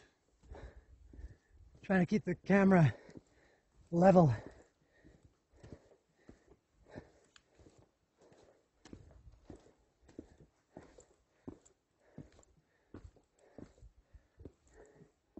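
Footsteps crunch on a rocky dirt trail.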